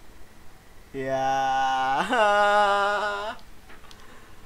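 A young man sings a long wavering note close to a microphone.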